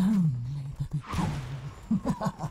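An icy burst whooshes.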